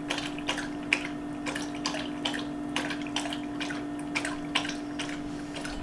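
A dog crunches and laps food close by.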